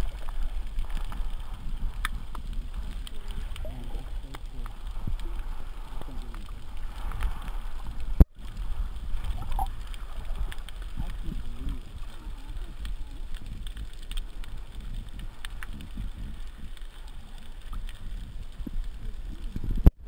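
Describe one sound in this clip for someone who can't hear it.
Water rumbles and gurgles in a low, muffled way, as heard underwater.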